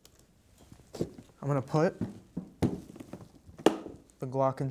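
A hard case knocks and clicks as it is set onto a metal stand.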